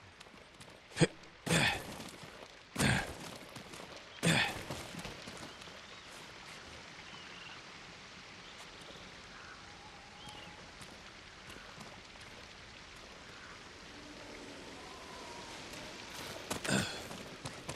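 Heavy thuds sound as a climber lands on rock.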